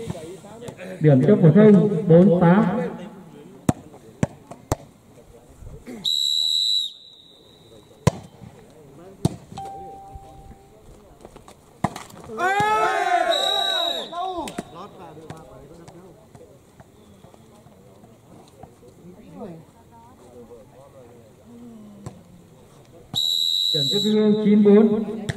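Young men shout and call out outdoors.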